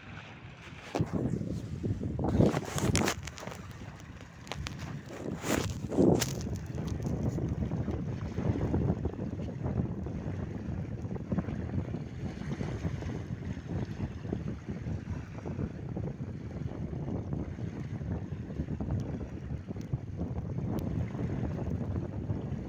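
Wind blusters across the microphone outdoors.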